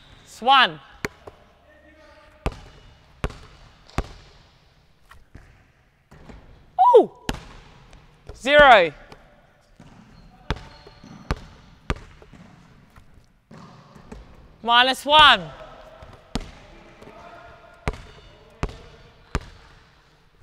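A ball bounces on a wooden floor in a large echoing hall.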